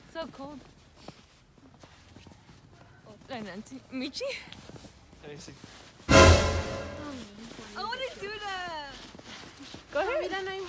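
Young women talk and laugh nearby outdoors.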